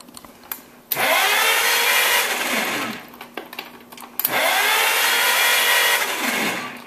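A starter motor whirs loudly as it cranks an engine in short bursts.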